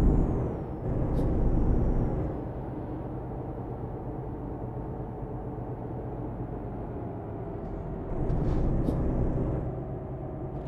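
A truck engine drones steadily, swelling louder now and then.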